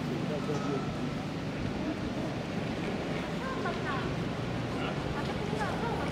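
Pram wheels roll over paving stones.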